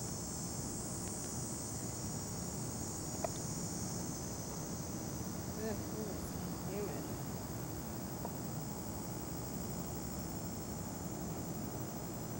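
Wind blows steadily across an open outdoor space.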